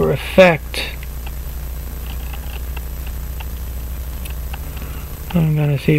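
Metal tweezers tick faintly against small metal parts.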